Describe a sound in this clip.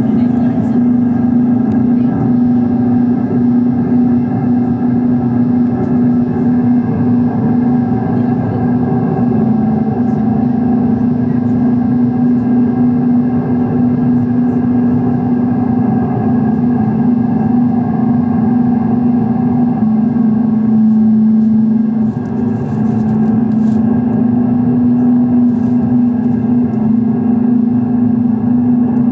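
Electronic synthesizer music drones steadily with slowly shifting tones.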